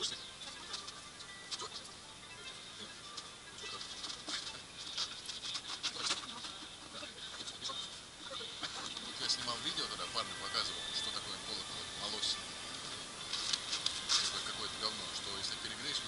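A man talks calmly outdoors.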